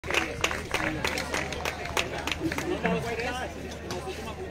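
Young women clap their hands in a quick rhythm.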